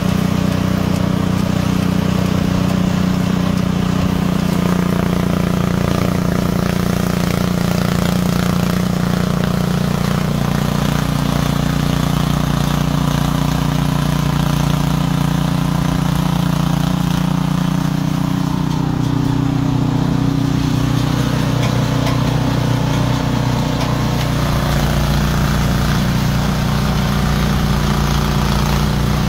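A snow blower engine roars steadily close by.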